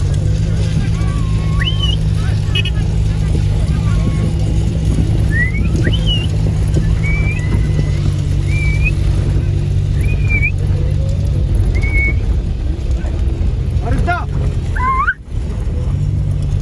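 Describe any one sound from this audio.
A vehicle engine rumbles steadily, heard from inside the cab.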